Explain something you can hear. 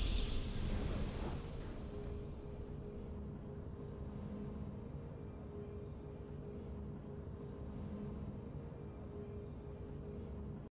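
Low, steady game music plays.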